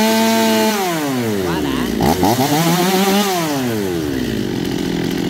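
A chainsaw engine revs up and down.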